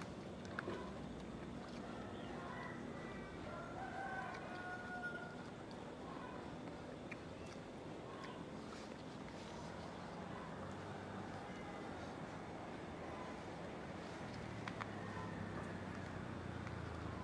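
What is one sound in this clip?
An elderly woman chews corn.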